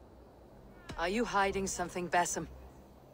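A woman asks a question in a firm, calm voice.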